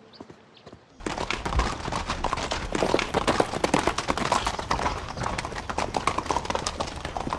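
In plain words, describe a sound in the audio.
Many horses' hooves clatter on the ground.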